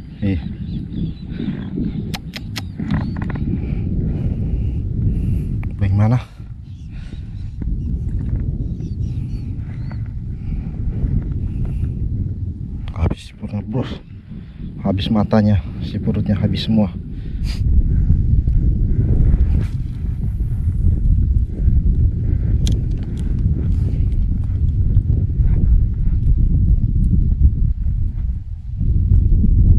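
Wind blows steadily across the microphone outdoors on open water.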